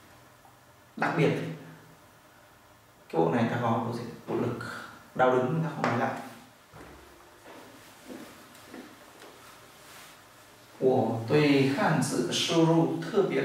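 A man speaks calmly and clearly, close by, in bursts with pauses.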